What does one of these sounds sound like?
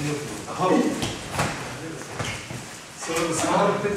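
Bodies thump onto a mat as students fall.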